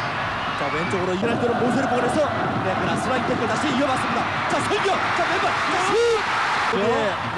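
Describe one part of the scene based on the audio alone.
A stadium crowd's cheering swells loudly near the end.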